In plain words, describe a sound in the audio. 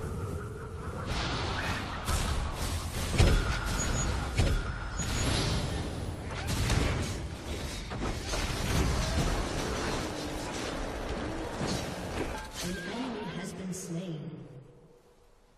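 Magic blasts and weapon hits crackle and boom in a fast fight.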